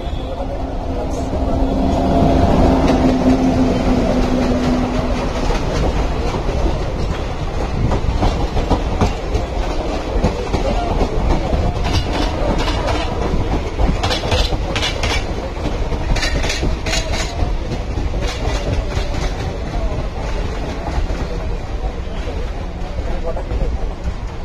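A passenger train rumbles past on the tracks.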